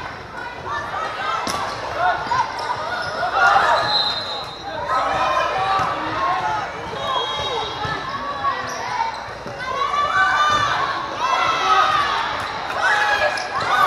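Many people chatter and call out in a large echoing hall.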